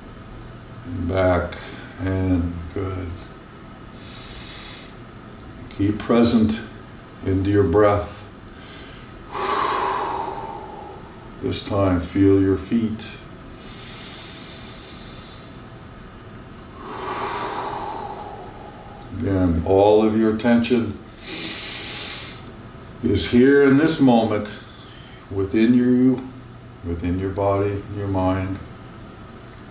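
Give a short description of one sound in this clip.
An older man speaks calmly, in short phrases with pauses.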